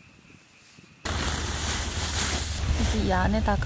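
A bag rustles as it is handled.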